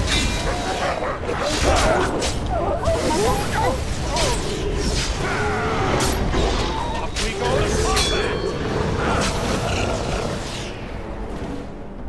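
Metal blades clash and strike in a fast, noisy fight.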